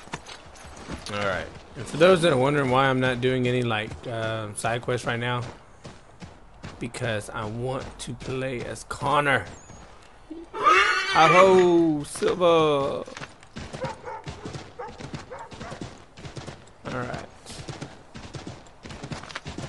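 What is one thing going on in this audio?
A horse's hooves clop at a trot on snowy ground.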